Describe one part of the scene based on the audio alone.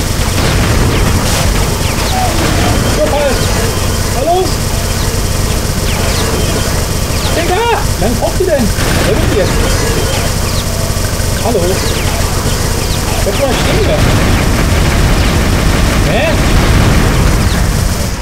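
A rapid-fire gun rattles steadily.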